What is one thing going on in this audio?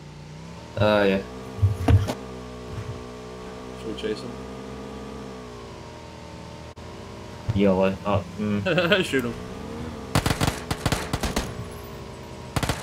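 A motorcycle engine hums steadily, its pitch shifting as the bike speeds up and slows.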